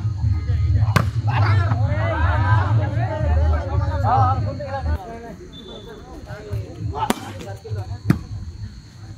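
A volleyball is struck by hand outdoors with sharp slaps.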